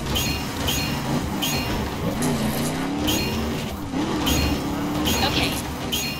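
Crates crash and tumble against a vehicle.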